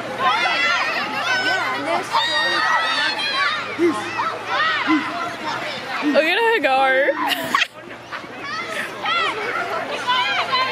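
A crowd of children shouts and cheers excitedly outdoors.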